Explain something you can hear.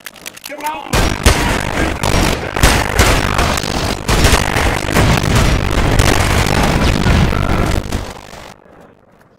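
Rapid gunfire rattles and echoes in a stone tunnel.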